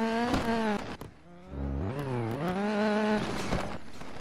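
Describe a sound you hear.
A car engine revs, its pitch rising and falling.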